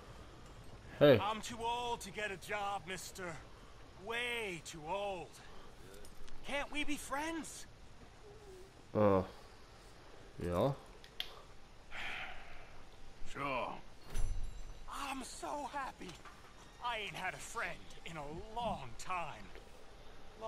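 A second man answers in a rough voice, close by.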